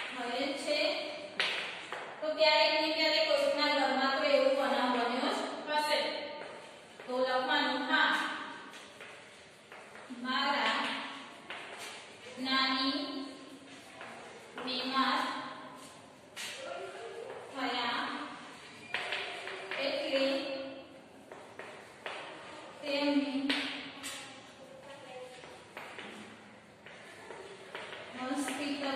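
A young woman speaks calmly and clearly, as if teaching, in a room with some echo.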